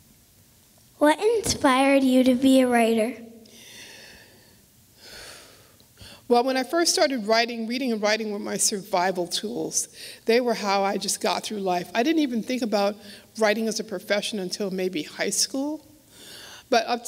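A middle-aged woman speaks calmly into a microphone in a large echoing hall.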